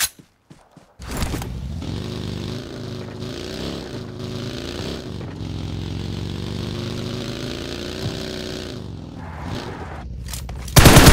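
A buggy engine hums and revs as it drives over grass.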